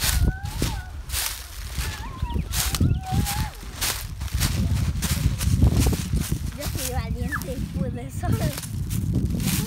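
Young children talk and call out nearby.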